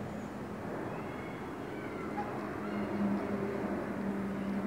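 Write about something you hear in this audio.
Birds call faintly from high overhead.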